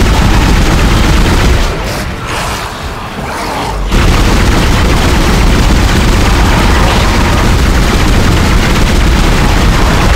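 An energy gun fires in rapid bursts.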